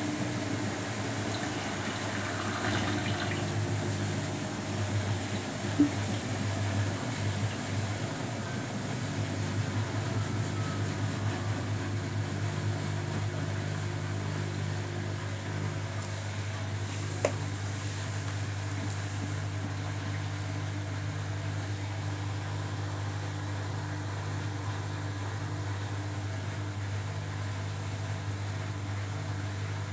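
Water sloshes with wet laundry tumbling in a washing machine drum.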